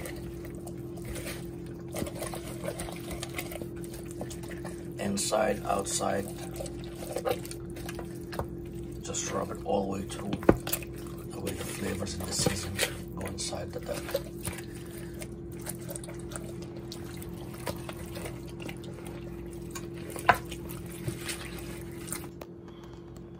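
Hands squelch and squish as they rub wet food in a bowl.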